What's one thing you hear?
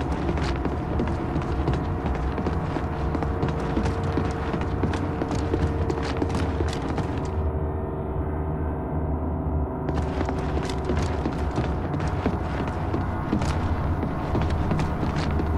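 Heavy boots thud in steady footsteps on a metal floor.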